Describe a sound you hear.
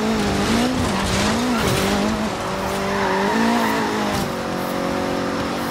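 A car engine roars at high speed, its pitch wavering as it shifts gears.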